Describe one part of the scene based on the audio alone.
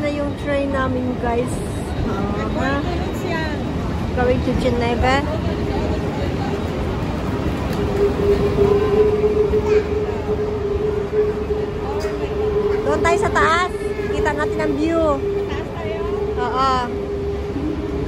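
Men and women chatter nearby in an echoing hall.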